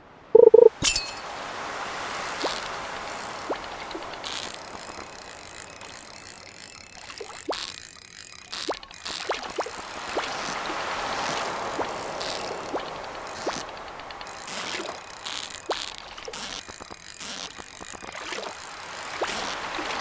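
Light footsteps patter steadily along the ground.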